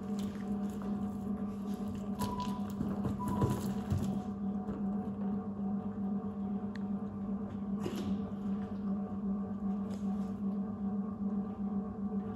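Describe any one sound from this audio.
Liquid drips and splashes from a wet cloth bag into a plastic bin.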